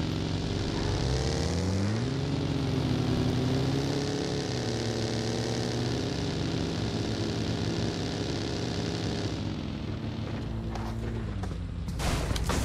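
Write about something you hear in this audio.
A buggy engine revs and hums while driving.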